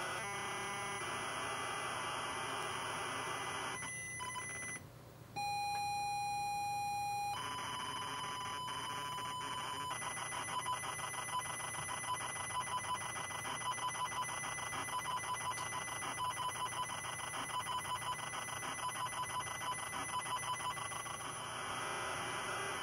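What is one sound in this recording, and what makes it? Harsh, buzzing data tones screech and warble from a loudspeaker.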